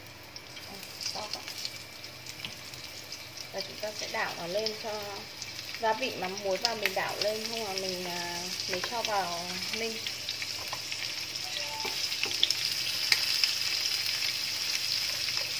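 Meat sizzles in a hot pan, growing steadily louder.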